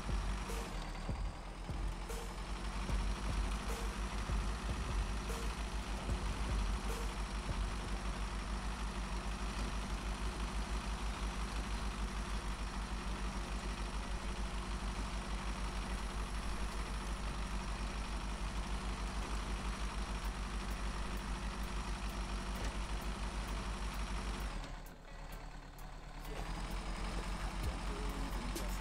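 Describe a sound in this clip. A heavy truck engine rumbles and strains steadily.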